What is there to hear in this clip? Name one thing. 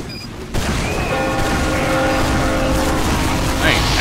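A gun fires rapid shots.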